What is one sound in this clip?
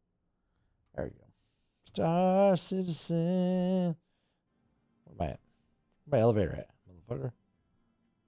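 A man speaks into a close microphone, with animation.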